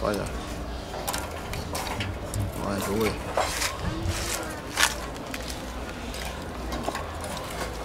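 A wooden stick pokes and scrapes among charcoal embers.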